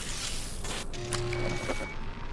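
An electronic device chirps and hums.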